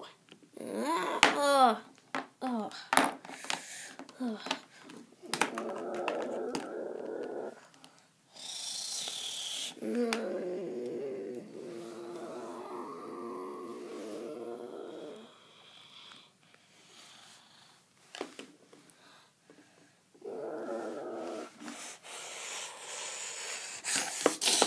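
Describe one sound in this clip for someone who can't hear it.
Plastic toy figures knock and tap against a wooden floor.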